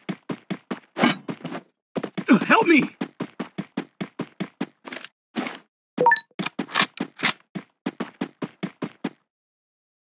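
Quick footsteps run over ground and wooden floors.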